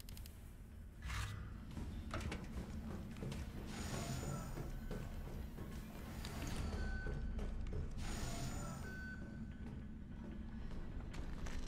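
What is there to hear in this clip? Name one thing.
Footsteps tap on a metal floor.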